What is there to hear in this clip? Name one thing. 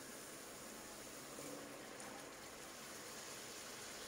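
Chickpeas tumble into a pan of sauce with a soft splatter.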